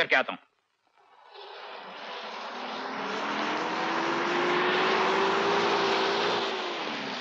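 A car engine hums as a car drives up a driveway.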